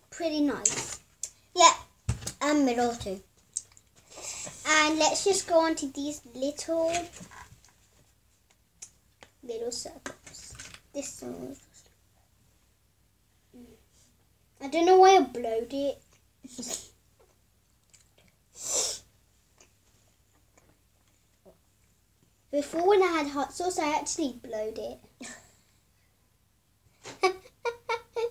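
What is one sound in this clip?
Two young girls talk in bursts, close by.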